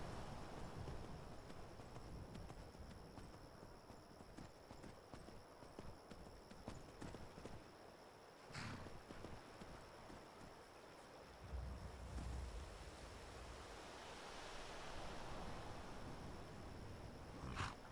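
A horse trots on cobblestones.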